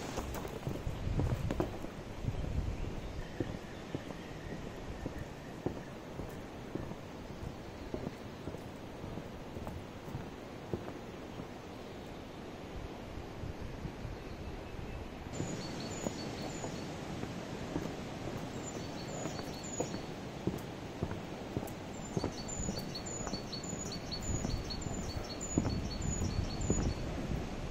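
Wind blows outdoors and rustles leaves.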